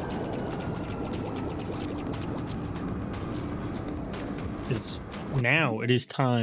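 Upbeat electronic game music plays with quick effects.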